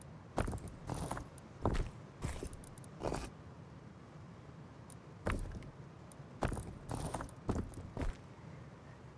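Game menu items click as they are moved around.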